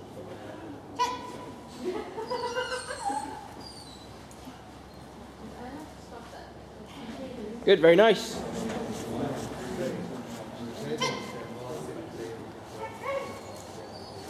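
A woman calls out to a dog in a large echoing hall.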